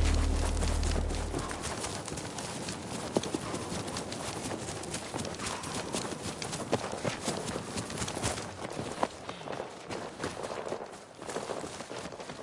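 Footsteps crunch over grass and dirt at a steady pace.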